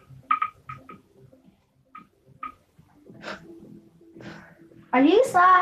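Short electronic beeps and game sound effects play through a television's speakers.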